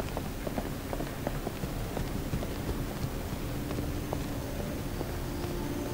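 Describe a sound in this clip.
Footsteps pad steadily across a carpeted floor.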